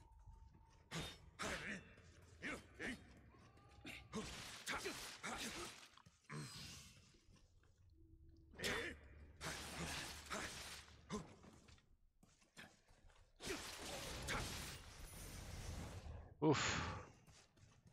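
Swords clash and slash in a game fight.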